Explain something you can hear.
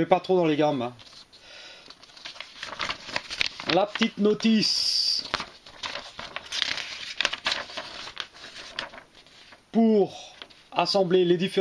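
A paper sheet rustles as it is unfolded and handled.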